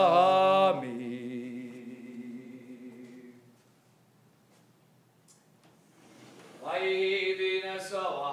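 A man chants in a sustained singing voice through a microphone in an echoing hall.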